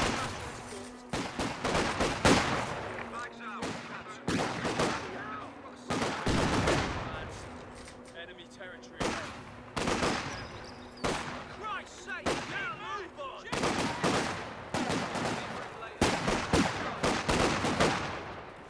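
Gunshots and explosions crack and boom in bursts.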